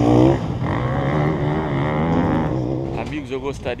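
An enduro motorcycle engine runs on a dirt track.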